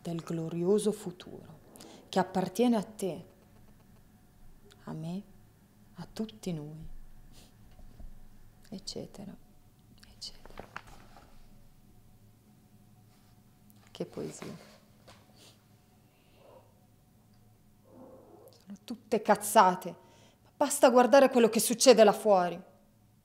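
A young woman reads out aloud calmly and close by, with pauses.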